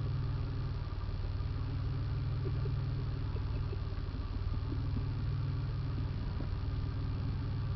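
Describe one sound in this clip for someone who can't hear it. A 4x4 engine drones at low speed, heard from inside the cab.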